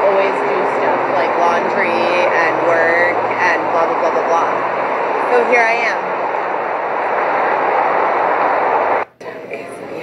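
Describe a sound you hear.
A train rumbles past nearby.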